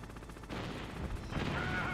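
A helicopter's rotor thuds steadily.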